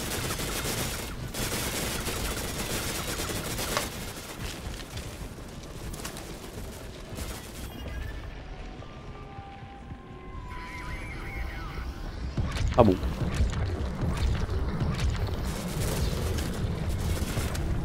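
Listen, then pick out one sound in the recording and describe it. Loud rushing game effects roar and crackle.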